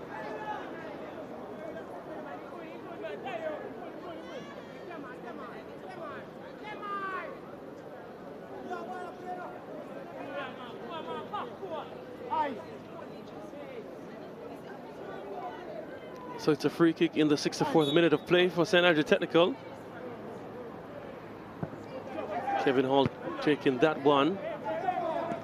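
A crowd murmurs faintly in the stands outdoors.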